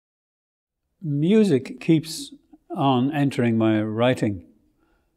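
An elderly man reads aloud slowly and expressively, close to a microphone.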